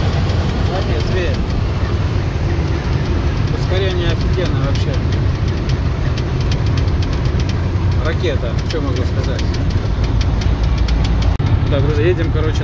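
A truck engine drones steadily from inside the cab while driving.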